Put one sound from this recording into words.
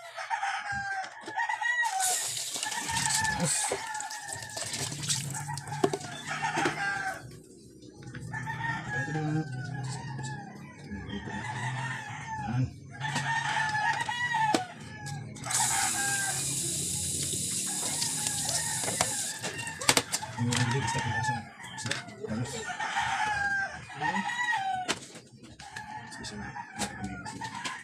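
Metal utensils clink against a dish.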